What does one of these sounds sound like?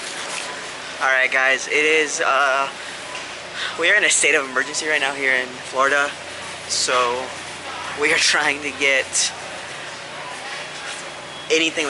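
A young man talks animatedly, close up.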